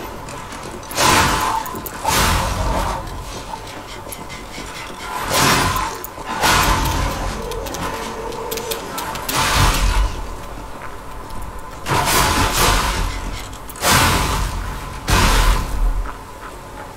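Blades clash and strike in heavy, echoing blows.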